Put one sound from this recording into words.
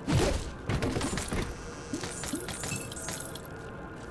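A game menu opens with a soft click.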